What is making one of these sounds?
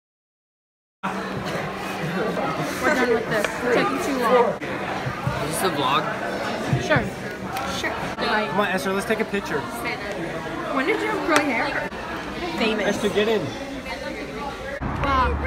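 Many voices chatter in the background of a busy room.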